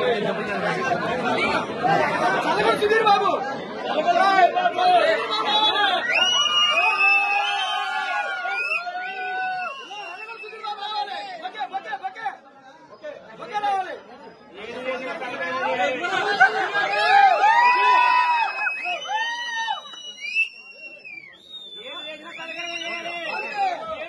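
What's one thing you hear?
A crowd of men chatter and talk over one another close by.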